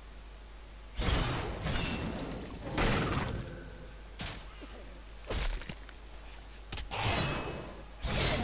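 Swords slash and strike in a fast fight.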